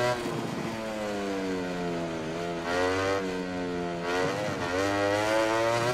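A racing motorcycle engine screams at high revs, dropping in pitch when braking and rising again as it accelerates through the gears.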